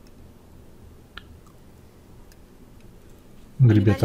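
A fork clinks softly against a plate.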